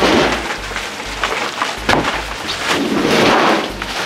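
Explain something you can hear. Objects clatter into a metal box.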